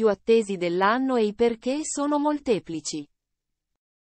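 A young woman talks close up.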